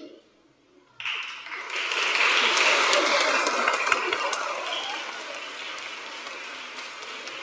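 An audience claps in a large echoing hall.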